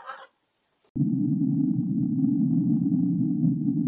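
A sea lion blows bubbles underwater with a dull rushing rumble.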